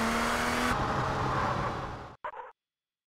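A car engine hums as a car drives off.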